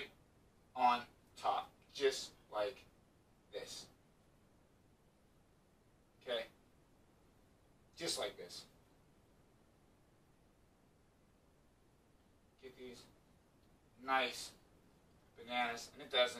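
A man talks calmly nearby, in short bursts with pauses.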